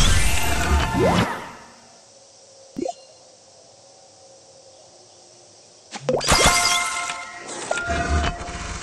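Game bubbles pop and chime in bursts.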